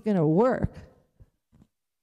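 A woman speaks through a microphone in a large echoing room.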